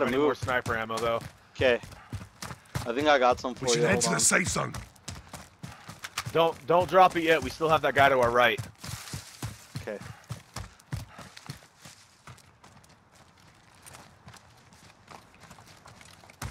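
Footsteps crunch quickly over dirt and grass.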